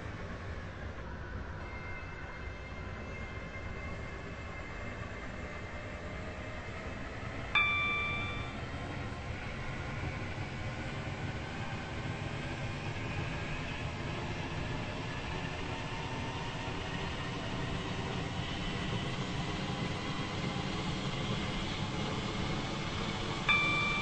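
A train's motor hums and whines as the train speeds up.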